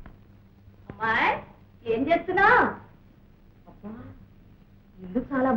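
A woman speaks nearby in short phrases.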